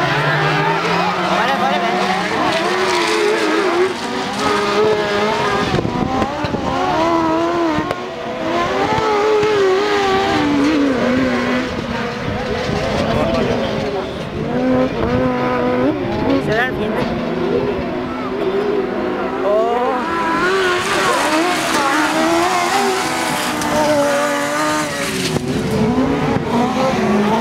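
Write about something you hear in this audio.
Racing car engines roar and whine as cars speed around a dirt track.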